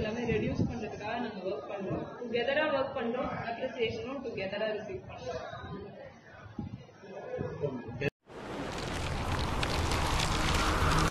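A young woman answers over a phone line.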